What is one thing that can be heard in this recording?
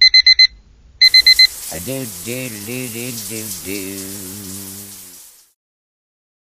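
Shower water sprays and hisses.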